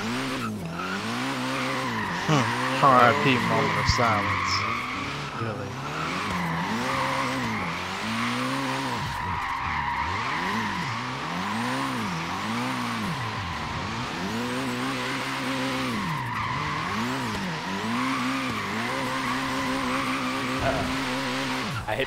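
Tyres squeal steadily as a car drifts.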